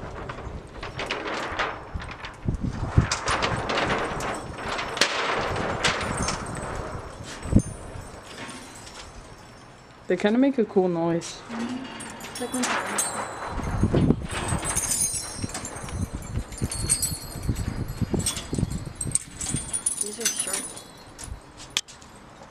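Metal keys jingle and clink as a hand brushes through them.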